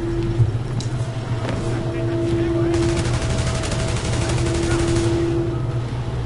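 Rapid gunshots crack nearby.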